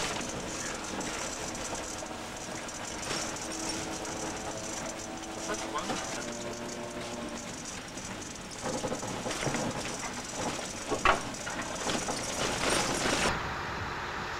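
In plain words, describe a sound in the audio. A train rumbles and rattles along the track.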